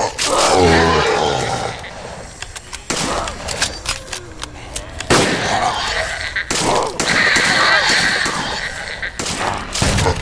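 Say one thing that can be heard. Shells click into a pump-action shotgun as it is reloaded.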